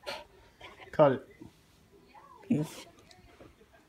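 A dog whines and yelps briefly close by.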